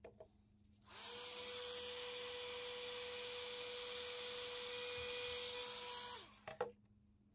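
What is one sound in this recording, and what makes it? A hair dryer blows with a steady whirring hum.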